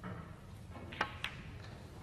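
A snooker cue taps a ball with a sharp click.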